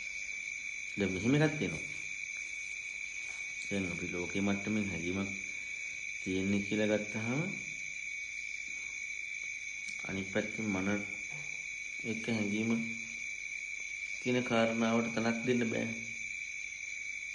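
A man chants slowly in a deep, drawn-out voice.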